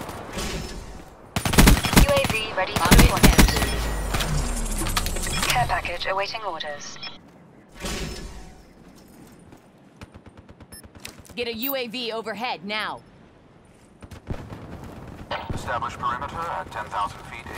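Automatic gunfire rattles in rapid bursts.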